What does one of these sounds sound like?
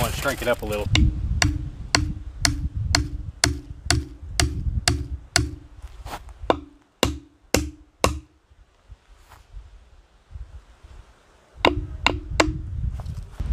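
A hammer strikes a metal stake with sharp ringing clanks.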